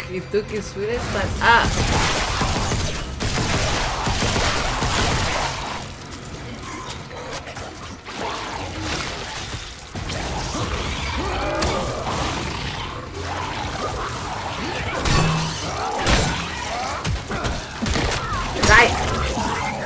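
A creature growls and shrieks.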